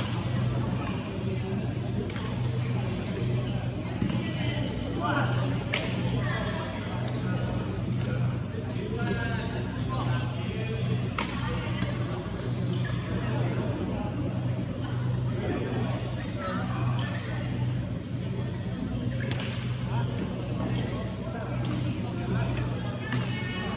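Shuttlecocks are struck with sharp racket pops in a large echoing hall.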